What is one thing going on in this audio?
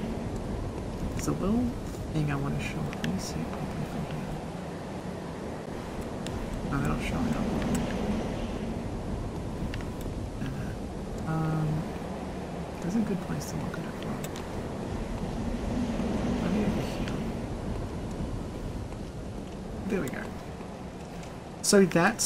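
A young woman talks calmly into a close microphone.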